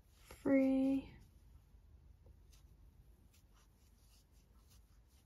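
A crochet hook softly rustles and clicks against yarn.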